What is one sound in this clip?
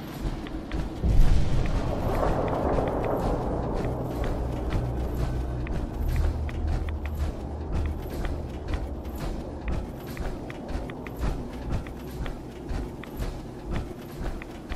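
Heavy metal-shod footsteps thud steadily on rocky ground.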